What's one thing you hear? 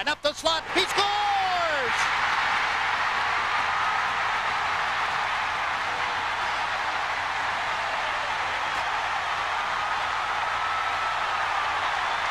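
A large crowd cheers and roars loudly in a big echoing arena.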